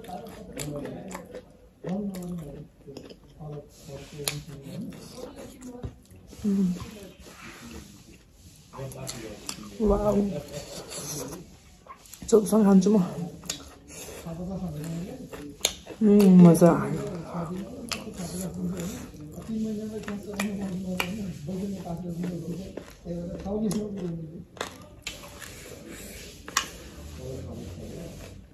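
A young woman chews food and smacks her lips noisily.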